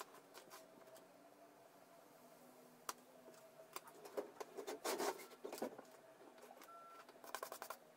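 Small plastic parts click and tap on a wooden table.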